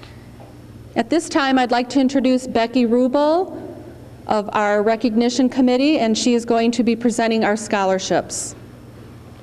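A middle-aged woman sings through a microphone in an echoing hall.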